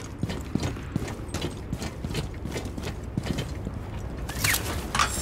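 Footsteps thud quickly on a metal roof.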